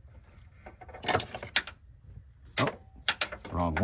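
Plastic engine parts click and rattle as a hand works them loose.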